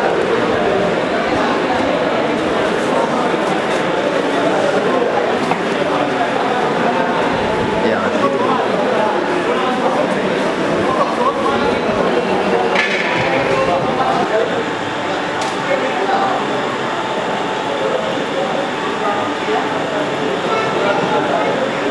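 Many men and women chatter in a busy, echoing hall.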